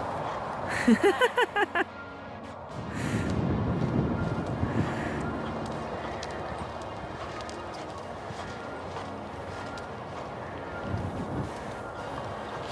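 Hooves thud softly on loose sand at a steady trot.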